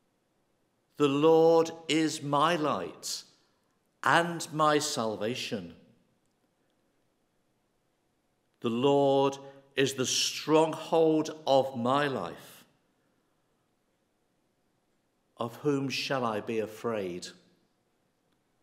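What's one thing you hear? An elderly man reads out calmly into a microphone, with pauses.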